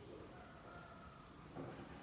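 Footsteps shuffle softly across a hard floor in an echoing room.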